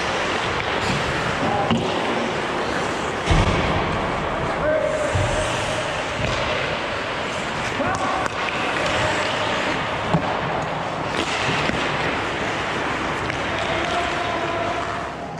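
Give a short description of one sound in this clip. Hockey sticks clack against the ice and the puck.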